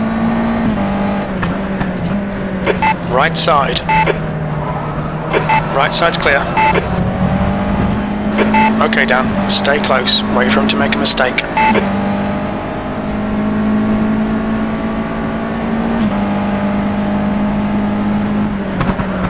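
A racing car engine drones loudly, its pitch stepping up and down as gears change.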